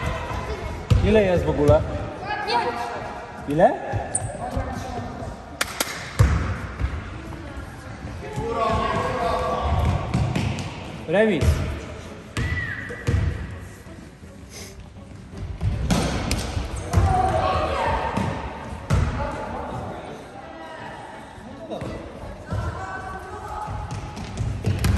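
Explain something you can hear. A basketball bounces on a wooden floor with hollow thuds.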